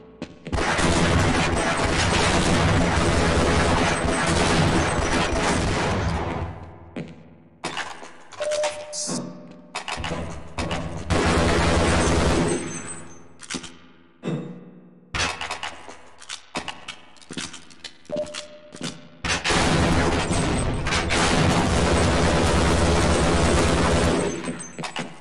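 A machine gun fires in long rapid bursts indoors.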